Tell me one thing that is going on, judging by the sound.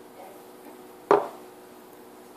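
A mug knocks down onto a hard counter.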